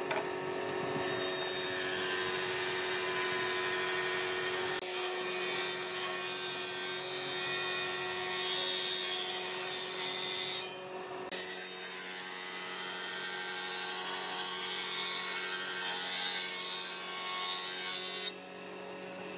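A jointer blade shaves wood with a loud rasping whir.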